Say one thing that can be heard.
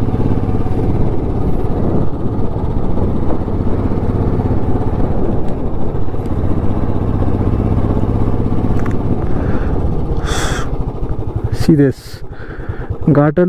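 A motorcycle engine thumps steadily up close.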